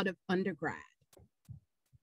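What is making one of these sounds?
A woman speaks cheerfully over an online call.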